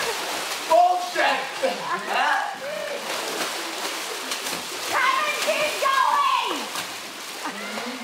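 Water splashes and churns loudly.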